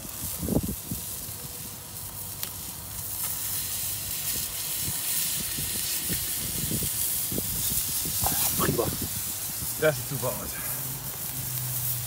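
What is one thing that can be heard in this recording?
A metal spatula scrapes across a grill grate.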